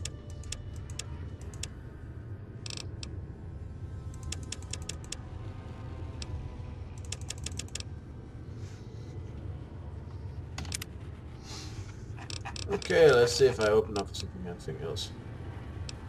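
Short menu clicks tick as selections change.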